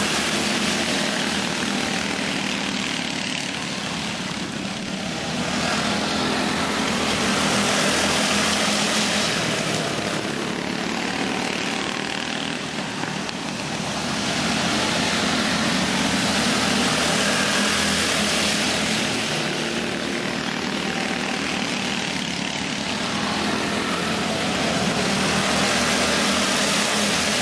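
Go-kart engines buzz and whine as the karts race around a track, rising and falling as they pass.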